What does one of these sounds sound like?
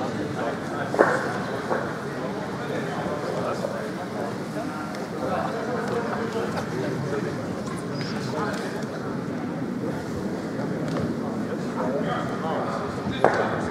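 Curling stones clack together on ice.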